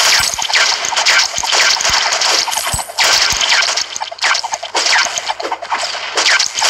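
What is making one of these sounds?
Game coins chime as they are collected.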